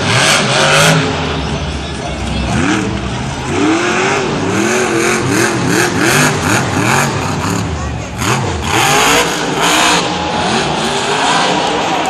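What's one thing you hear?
A monster truck lands hard with a heavy crash.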